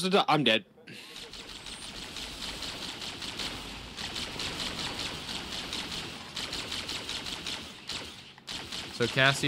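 A game weapon fires in a rapid, steady hum of shots.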